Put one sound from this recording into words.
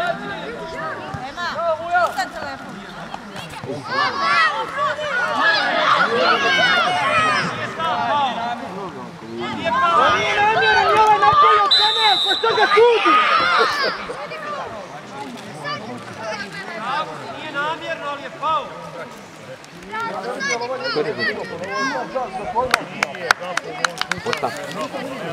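Several young players shout and call out across an open field.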